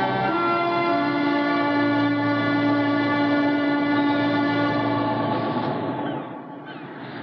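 An older woman speaks quietly, close by.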